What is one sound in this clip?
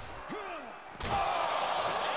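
A heavy body slams down with a loud thud.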